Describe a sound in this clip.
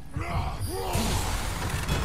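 A fiery blast bursts with a deep roar.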